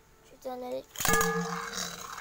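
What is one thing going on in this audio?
A spinning top is launched with a sharp snap.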